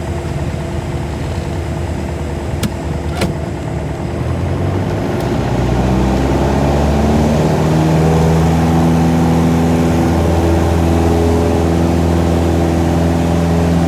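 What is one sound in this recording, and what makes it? A small propeller plane's engine drones loudly and rises in pitch as it revs up.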